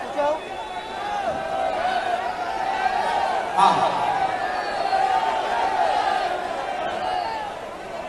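A crowd cheers and shouts in the background.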